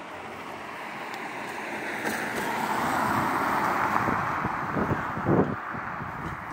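A car drives past close by on a wet road, swelling and then fading.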